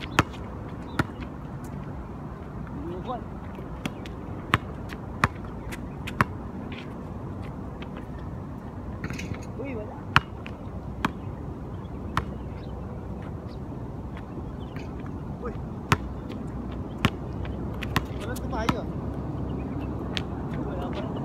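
A basketball bounces on hard outdoor ground.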